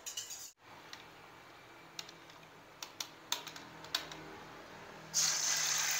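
A whisk clinks against a bowl.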